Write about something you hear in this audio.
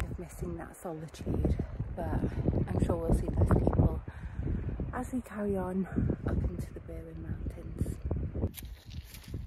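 A young woman talks calmly, close to a microphone.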